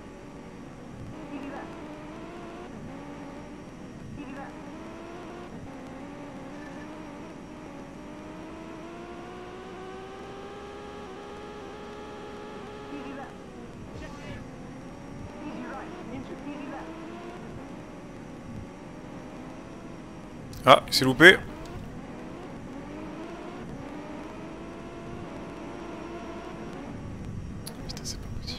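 A rally car engine roars, its pitch rising and falling with the gear changes.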